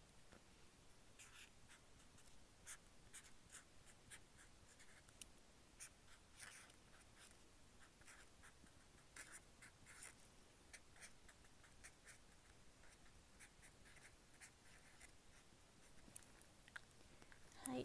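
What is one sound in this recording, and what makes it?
A marker squeaks and scratches on paper in short strokes.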